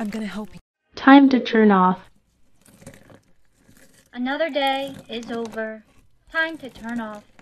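A young woman speaks dramatically, close to a microphone.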